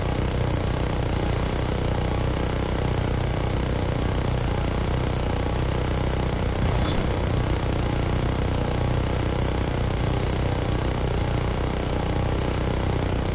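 A minigun fires in a rapid, continuous roar.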